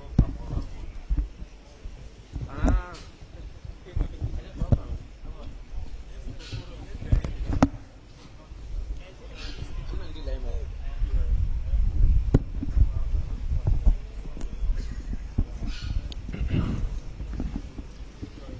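A man speaks steadily into a microphone, heard through a loudspeaker.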